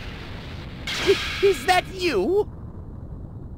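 A man with a high, rasping voice speaks in surprise.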